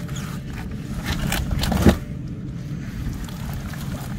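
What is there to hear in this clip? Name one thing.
Rough cloth rustles as it is handled.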